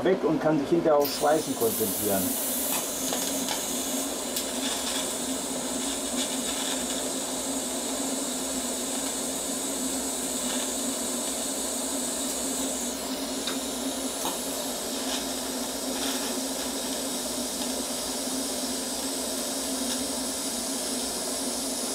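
A welding arc hisses and crackles steadily.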